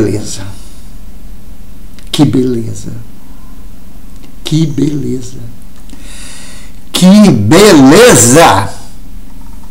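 A middle-aged man speaks expressively into a nearby microphone, in short bursts with pauses.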